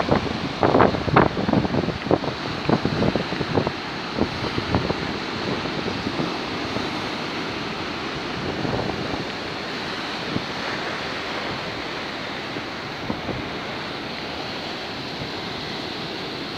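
Small waves wash and fizz onto a sandy shore.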